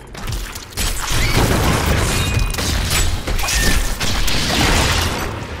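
A lightning bolt strikes with a loud crackling burst.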